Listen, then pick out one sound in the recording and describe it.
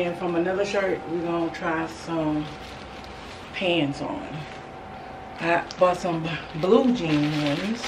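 Plastic packaging crinkles and rustles in a woman's hands.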